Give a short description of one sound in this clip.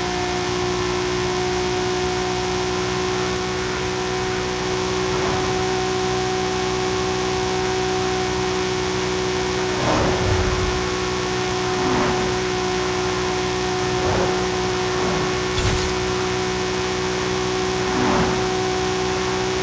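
A car engine drones steadily at high speed.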